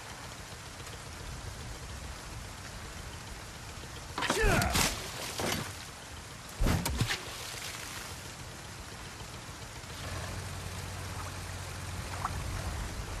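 Rain falls steadily on water.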